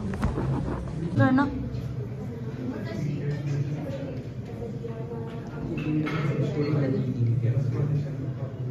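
Adults chat casually nearby in a room.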